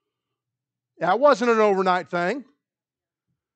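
A man speaks loudly and briefly.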